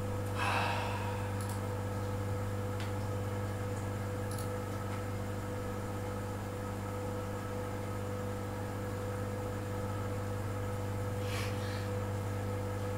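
A young man speaks briefly and quietly into a microphone.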